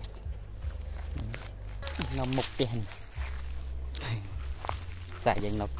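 Dry grass and leaves rustle close by as someone walks through them.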